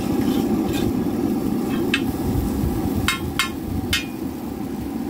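A metal spatula scrapes and clinks against a hot griddle.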